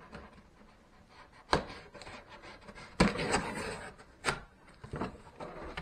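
A blade slices through packing tape on a cardboard box.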